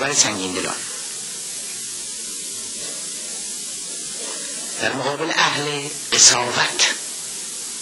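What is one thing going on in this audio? A middle-aged man speaks calmly and slowly, close to a microphone.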